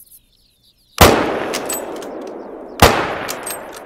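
A rifle fires loudly, and each shot echoes away.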